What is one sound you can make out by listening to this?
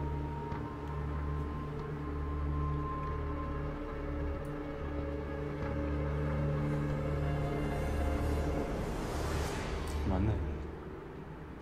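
Deep droning music swells and builds to a loud hit, then cuts off.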